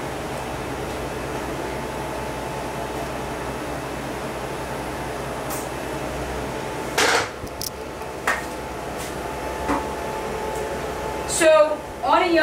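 An electrical device hums steadily.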